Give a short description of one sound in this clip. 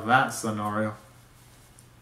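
A young man speaks briefly and loudly, close by.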